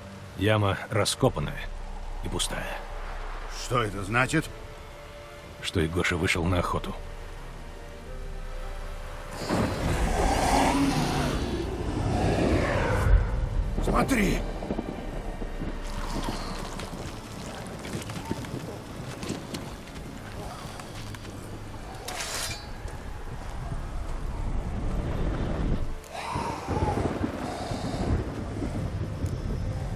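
A man speaks calmly in a low, gravelly voice.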